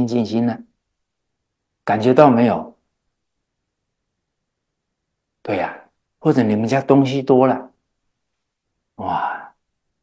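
An elderly man speaks calmly into a microphone, with short pauses.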